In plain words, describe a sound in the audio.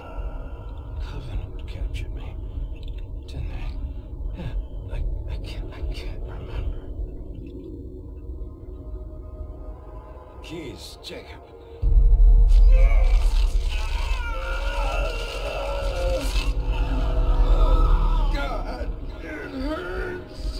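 A man speaks haltingly in a strained, pained voice.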